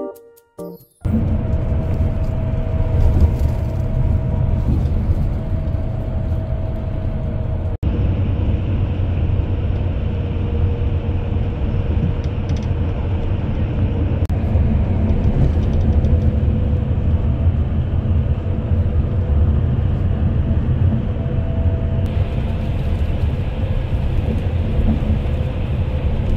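Road noise rumbles inside a vehicle moving at highway speed.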